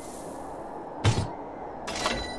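A game menu clicks.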